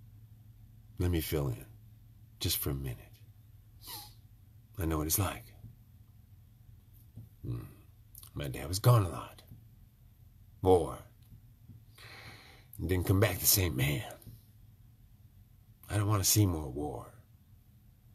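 An elderly man speaks calmly and slowly, close to a microphone, with pauses.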